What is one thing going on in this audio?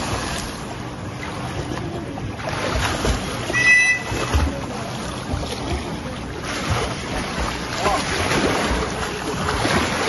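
Water splashes as swimmers thrash about.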